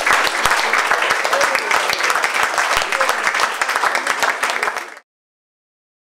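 A guitar is strummed quickly and briskly.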